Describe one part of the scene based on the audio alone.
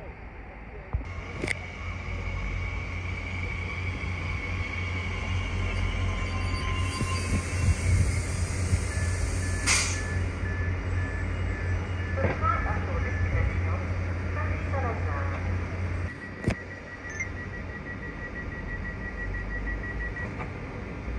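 A train rolls slowly into a station, its motors humming low.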